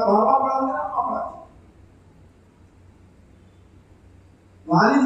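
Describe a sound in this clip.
An elderly man speaks with feeling into a microphone over loudspeakers, pausing between phrases.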